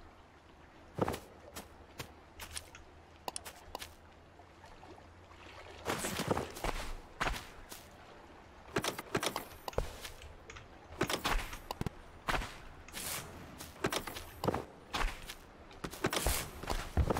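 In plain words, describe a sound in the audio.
Game sound effects click and pop.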